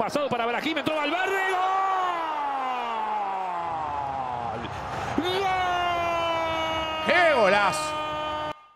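A young man shouts loudly into a close microphone in long, drawn-out cries.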